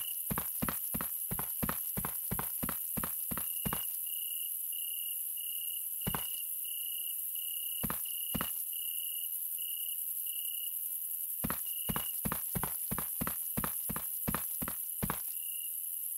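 Footsteps tap steadily on hard pavement.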